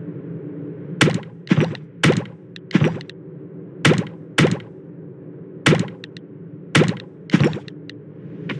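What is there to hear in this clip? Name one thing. Sharp menu clicks tick one after another.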